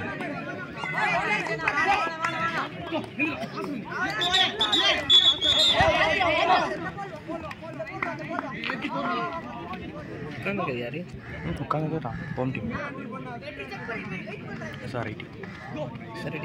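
Young players shout and call out loudly outdoors.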